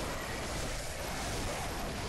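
A blade swings and slashes through the air.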